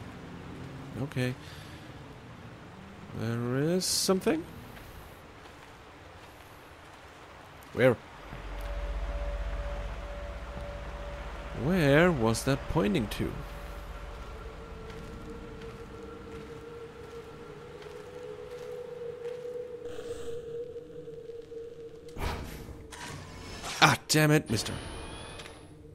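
A young man talks in short bursts, close to a microphone.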